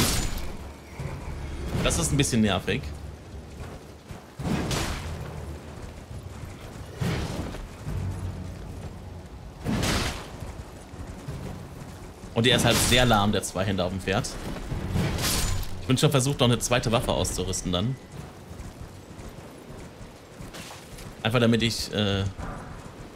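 A horse gallops with heavy hoofbeats.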